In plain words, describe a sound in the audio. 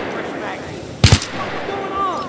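A rifle is reloaded with a sharp metallic click.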